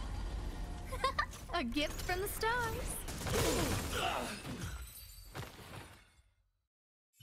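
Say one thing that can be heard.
Magic blasts and explosions crash and boom.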